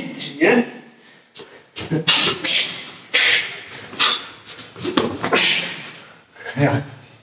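A man's karate uniform snaps sharply with quick strikes in an echoing room.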